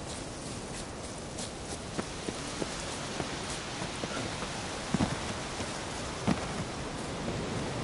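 Footsteps crunch over rough forest ground.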